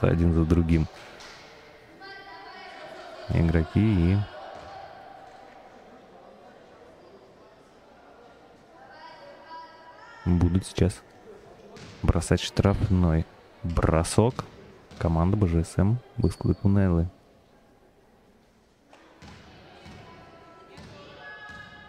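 Sneakers squeak on a wooden floor in a large hall.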